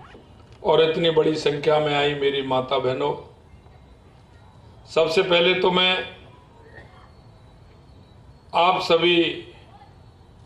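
A middle-aged man speaks into a microphone in short bursts, with pauses between.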